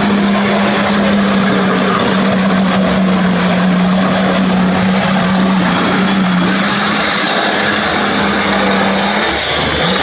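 A vehicle's engine drones steadily as it drives.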